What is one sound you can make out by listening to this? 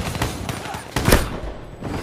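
An explosion booms with a bright blast.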